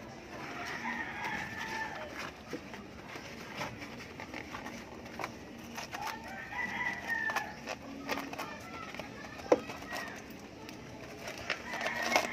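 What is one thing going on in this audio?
Stiff rubber squeaks and rubs as hands pull it into place.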